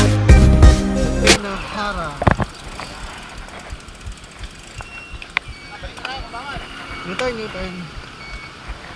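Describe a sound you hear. Bicycle tyres roll and hum on a paved road.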